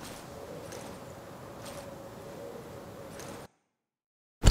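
Wind blows steadily across open snow.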